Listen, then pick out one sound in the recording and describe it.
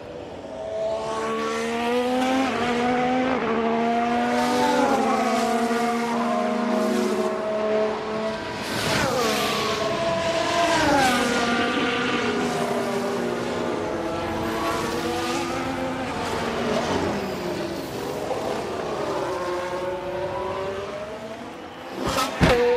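Racing car engines whine and roar, their pitch rising and falling as the cars speed past.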